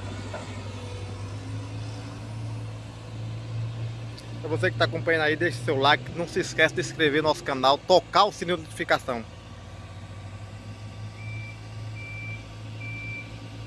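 An excavator's diesel engine rumbles steadily close by.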